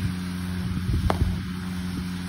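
A cricket bat cracks against a ball.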